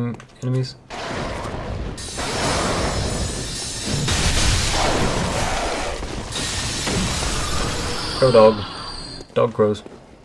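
A heavy weapon clangs and crashes against an enemy.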